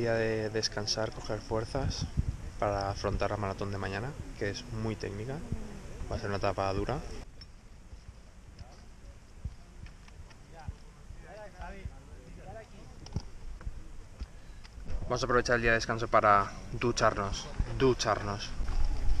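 A young man talks close to the microphone in a low, casual voice.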